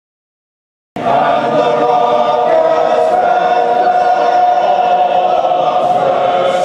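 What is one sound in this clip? A large crowd cheers in an open stadium.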